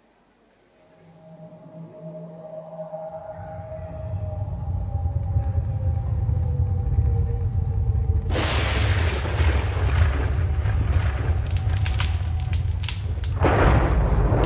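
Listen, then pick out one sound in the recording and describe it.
Loud music with a heavy bass beat plays through loudspeakers in a large hall.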